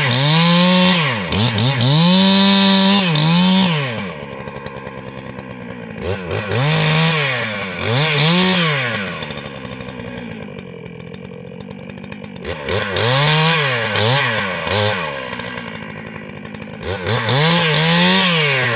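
A chainsaw engine revs loudly, drops to an idle, then revs again, over and over.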